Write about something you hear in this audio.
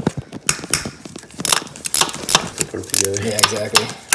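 A ratchet wrench clicks against a bolt.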